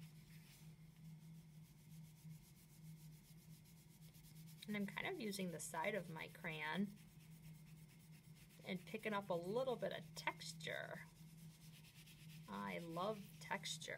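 A crayon scratches softly across paper.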